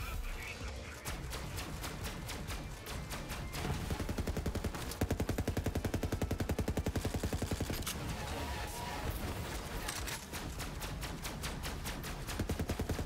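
A rapid-fire gun shoots in fast bursts.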